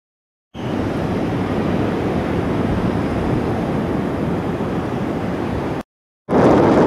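Wind blows and rustles through palm trees.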